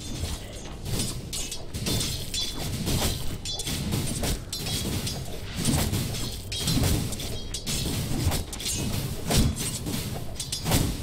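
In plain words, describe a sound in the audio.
Blades clash and clang again and again in a busy fight.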